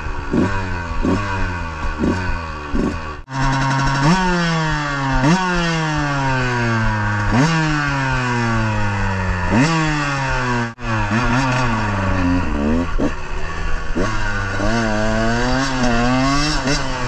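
A dirt bike engine revs sharply up and down, close by, over and over.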